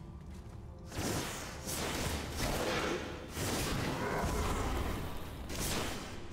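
Loud fighting sounds clash and whoosh.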